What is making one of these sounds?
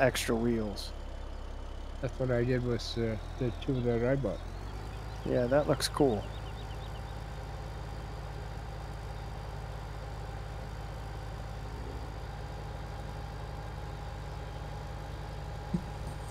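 A tractor engine hums low and steady.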